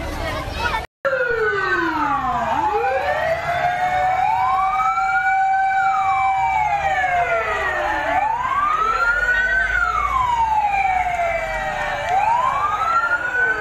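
A fire truck siren wails loudly, rising and falling.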